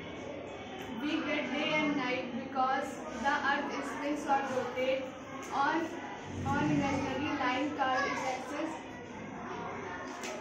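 A young girl speaks clearly and with animation, close by.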